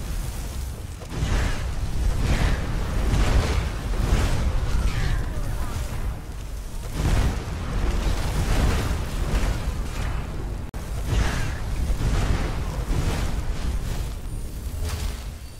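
Fire blasts roar and crackle in bursts.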